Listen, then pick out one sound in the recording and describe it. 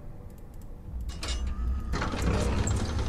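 A heavy door lock clunks open with a metallic rattle.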